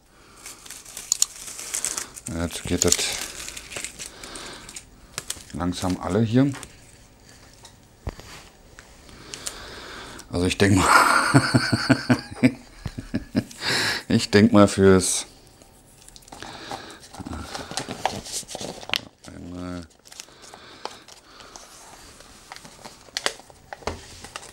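Small objects click and tap on a wooden table.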